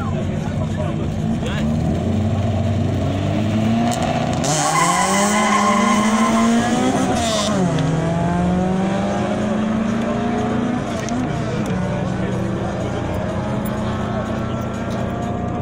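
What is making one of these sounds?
Car engines rev loudly nearby.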